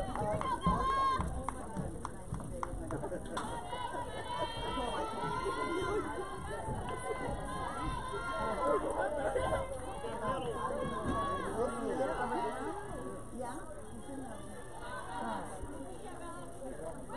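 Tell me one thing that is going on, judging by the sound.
Young women shout and chatter across an open outdoor field.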